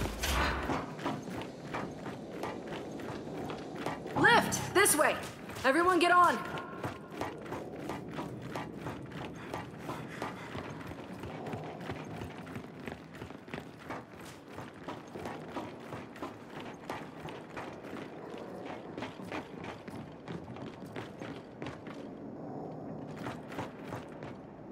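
Heavy footsteps clank quickly on a metal floor.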